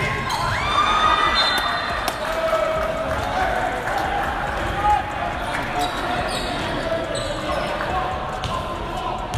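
A crowd cheers and chatters in a large echoing gym.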